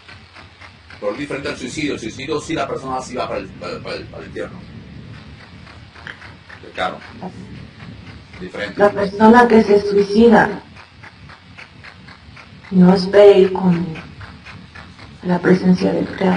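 A woman speaks with emotion over an online call, in bursts.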